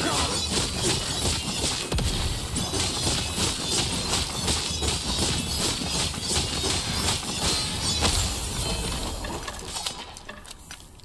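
Loud crackling and booming spell blasts come from a video game.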